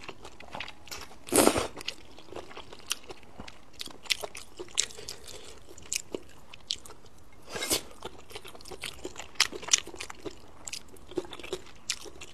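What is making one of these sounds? A woman chews food wetly, close to the microphone.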